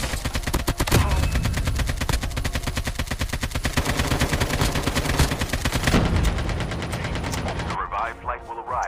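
A rifle fires fast, rapid bursts of shots.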